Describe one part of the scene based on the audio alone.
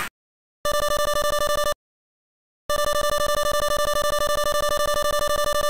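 Rapid high electronic blips chirp in quick bursts.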